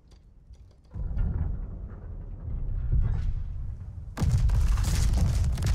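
Heavy naval guns fire with deep, booming blasts.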